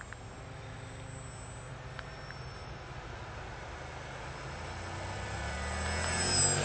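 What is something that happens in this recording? A small model airplane's electric motor whines overhead and grows louder.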